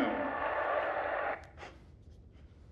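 Buttons on a remote control click softly.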